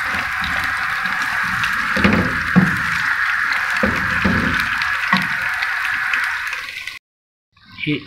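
Food sizzles loudly in hot oil.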